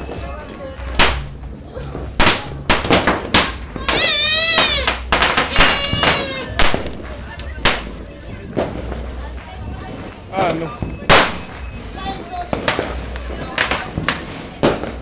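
Firecrackers bang sharply and loudly.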